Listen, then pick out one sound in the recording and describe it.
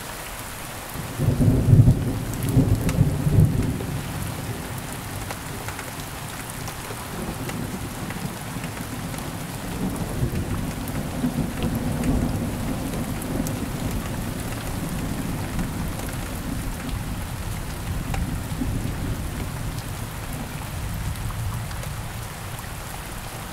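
Thunder rumbles and booms, rolling on and off in the distance.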